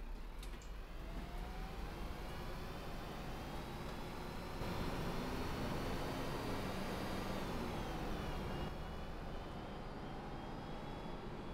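A bus engine revs up, its whine rising as the bus pulls away.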